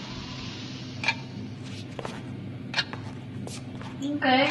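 A man's footsteps knock on a wooden floor in an echoing room.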